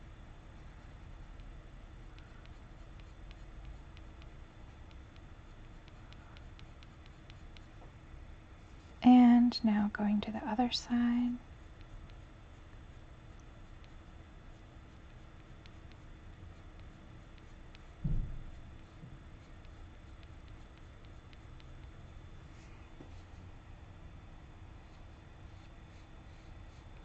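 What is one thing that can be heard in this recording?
A pencil scratches softly on paper in short strokes.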